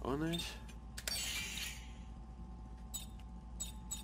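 Short electronic menu clicks sound as selections change.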